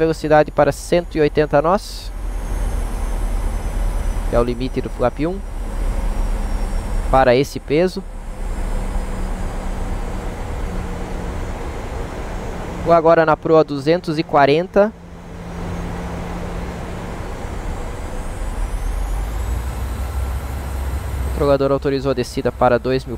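Jet engines drone steadily from inside an airliner's cockpit.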